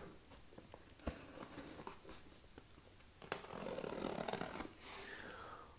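A knife slices through cardboard and packing tape.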